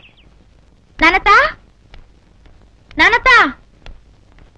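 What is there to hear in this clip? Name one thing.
A young woman calls out loudly.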